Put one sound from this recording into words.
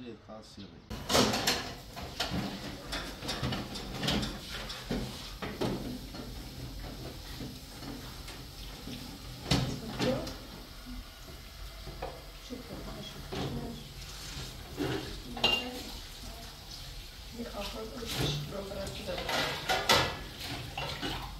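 Dishes clatter and clink in a sink.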